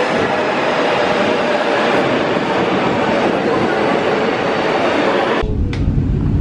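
A subway train rushes past along a platform with a loud roar.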